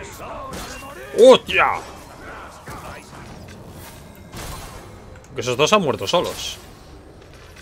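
Monstrous warriors grunt and roar.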